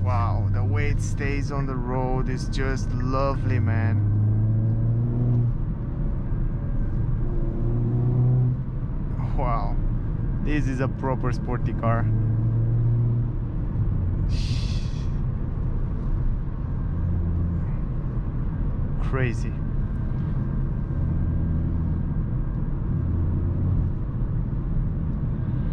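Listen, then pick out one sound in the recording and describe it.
A car engine drones steadily inside the car, its pitch rising and dropping as it shifts gears.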